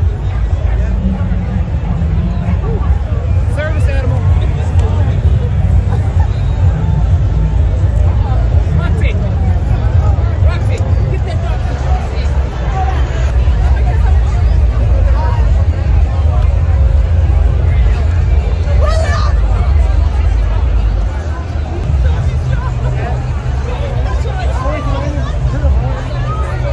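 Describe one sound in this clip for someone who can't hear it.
A dense outdoor crowd chatters all around.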